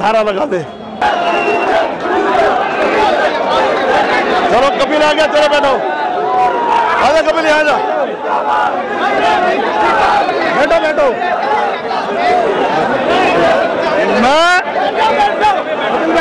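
A large crowd of men clamours and talks over one another outdoors.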